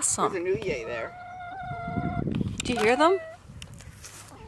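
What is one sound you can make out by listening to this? A rooster crows loudly close by.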